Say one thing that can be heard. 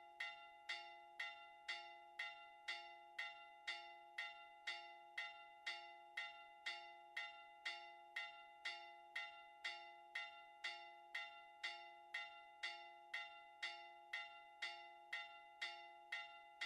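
A church bell rings out rapidly and steadily, each stroke ringing on.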